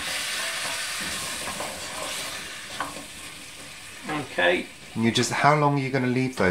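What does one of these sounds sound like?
A spatula stirs and scrapes vegetables in a metal pot.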